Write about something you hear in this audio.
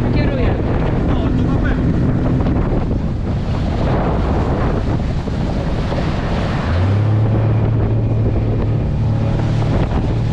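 Wind buffets the microphone outdoors.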